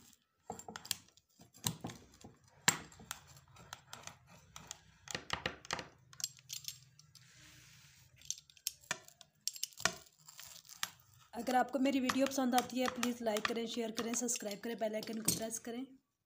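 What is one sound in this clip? A pizza cutter crunches through crisp flatbread on a plate.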